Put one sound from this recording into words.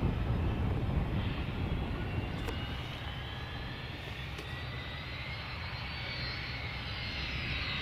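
A jet engine whines steadily.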